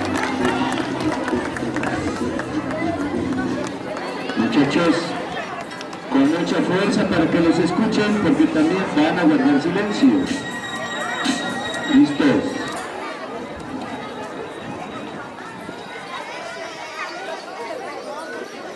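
A crowd of adults and children chatters outdoors.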